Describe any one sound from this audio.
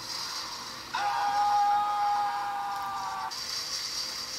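A handheld video game plays a short steady jingle.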